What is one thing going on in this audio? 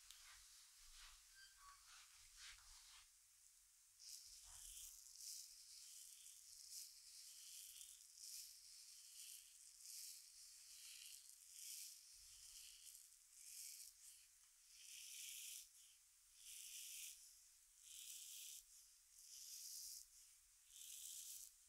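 Hands rub softly against hair and skin in slow, repeated strokes.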